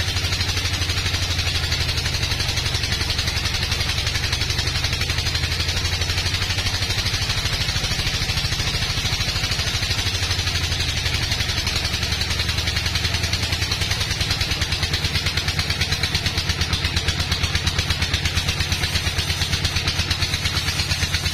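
A band saw cuts steadily through a large log with a loud whine.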